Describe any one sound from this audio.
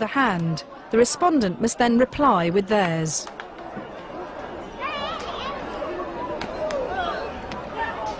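A man claps his hands sharply.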